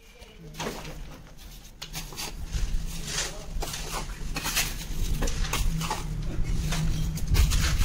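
A trowel scrapes and slaps wet cement mortar onto a brick wall.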